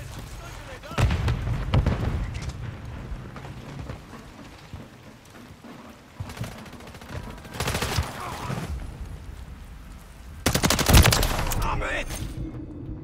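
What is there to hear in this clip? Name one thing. A rifle fires loud, rapid bursts of gunshots.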